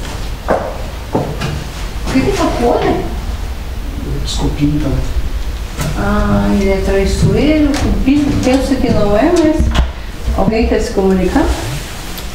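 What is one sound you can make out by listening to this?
An elderly woman talks close by in a low, hushed voice.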